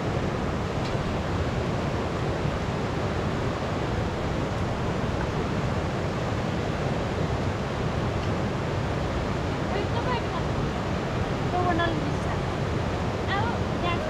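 A fast river rushes and roars steadily close by.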